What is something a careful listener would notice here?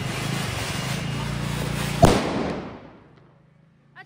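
A firework crackles and pops.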